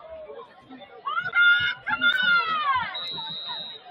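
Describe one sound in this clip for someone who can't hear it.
Young men shout loudly and cheer together.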